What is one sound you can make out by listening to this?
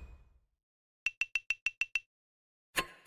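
Short electronic ticks sound in quick succession.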